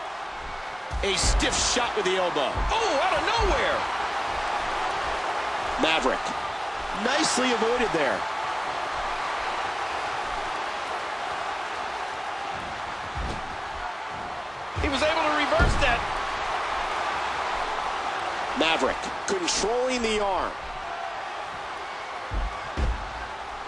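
Wrestlers' bodies slam onto a wrestling mat.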